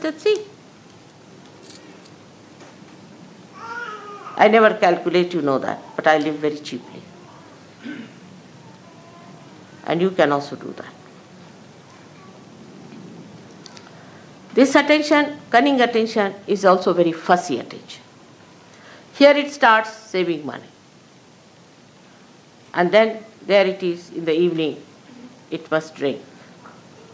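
An elderly woman speaks slowly and earnestly into a nearby microphone, with long pauses.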